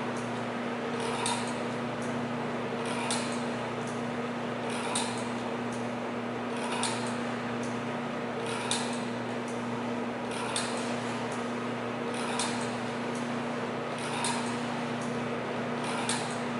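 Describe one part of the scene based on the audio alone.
An electrical machine hums steadily.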